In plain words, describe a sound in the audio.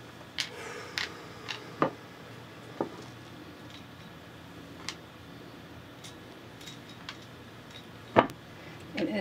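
Game pieces click and tap on a board.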